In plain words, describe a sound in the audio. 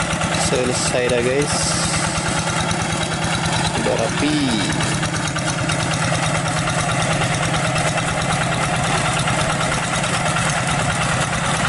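A small engine chugs loudly and steadily close by.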